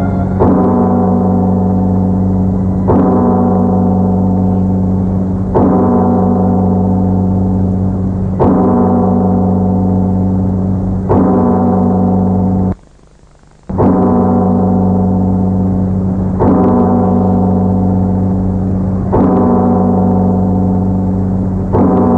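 A large bell is struck again and again, each stroke ringing out deep and long.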